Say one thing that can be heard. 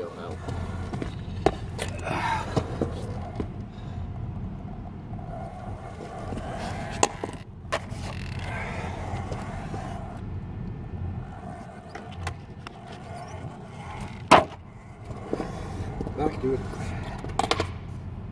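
A skateboard's wheels roll and scrape on stone paving.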